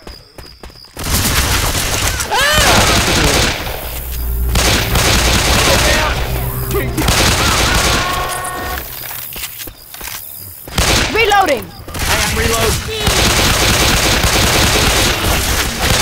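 Pistol shots fire rapidly.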